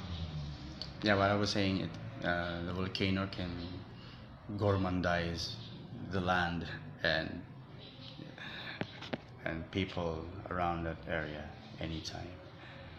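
A young man speaks calmly and close to a phone microphone.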